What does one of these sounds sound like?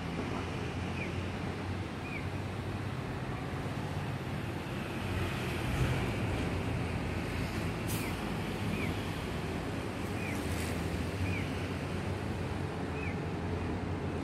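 A bird gives short, high chirps now and then.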